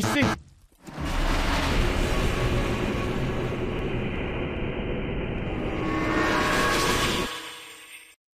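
A deep rushing roar swells as if through a swirling tunnel.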